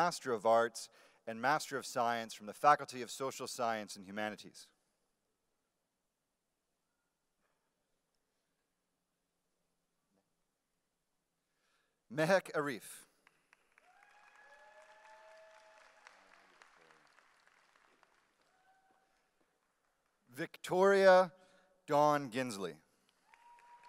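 A man reads out names calmly through a microphone and loudspeakers in a large hall.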